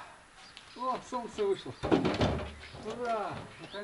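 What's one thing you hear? A wheelbarrow rattles as it is pushed over rough ground.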